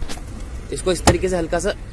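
A hand taps a hard plastic panel.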